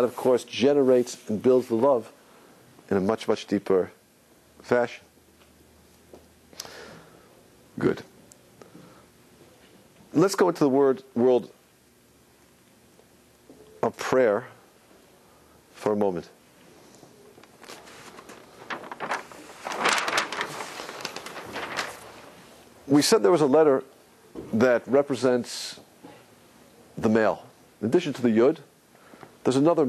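A man speaks in pauses, lecturing calmly.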